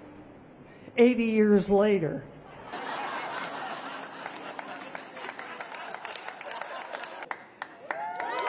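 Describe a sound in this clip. An elderly woman speaks with animation through a microphone on a loudspeaker.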